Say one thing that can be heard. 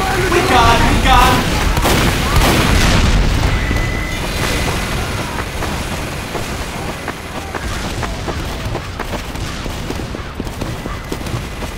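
Footsteps run over dirt in a video game.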